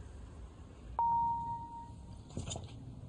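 A phone gives a short notification beep.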